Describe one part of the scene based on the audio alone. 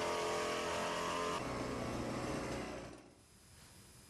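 A fogging machine drones loudly as it sprays.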